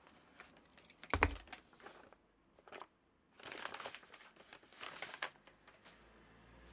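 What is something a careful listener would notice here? A plastic bag crinkles and rustles as it is opened.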